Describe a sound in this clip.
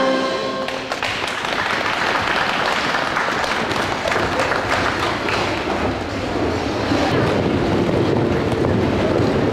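A crowd of people chatters and cheers in a noisy space.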